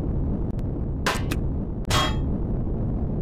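A cutting tool zaps in short, sharp bursts.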